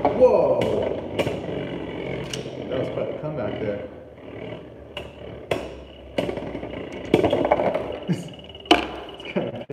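A spinning top clicks sharply against a plastic wall.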